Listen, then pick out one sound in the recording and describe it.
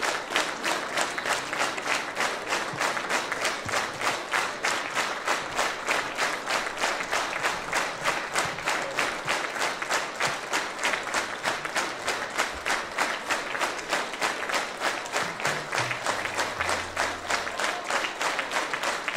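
A large audience claps in steady rhythmic unison in a big hall.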